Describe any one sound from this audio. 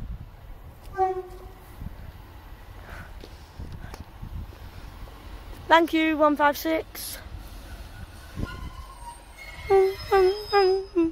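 A train horn blares several times, loud and close.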